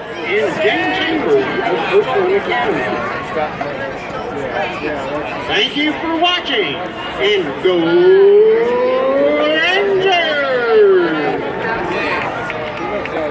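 A marching band plays outdoors in a large open stadium.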